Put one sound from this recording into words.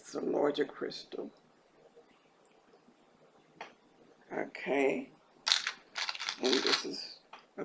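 A middle-aged woman speaks calmly and close by, with pauses.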